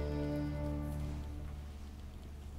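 A choir holds a final chord that rings out in a large echoing hall.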